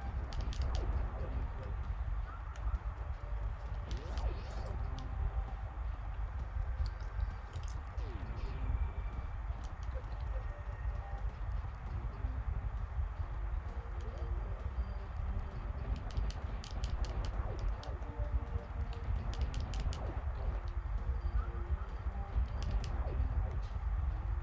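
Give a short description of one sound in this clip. Short electronic blasts and beeps from a video game ring out now and then.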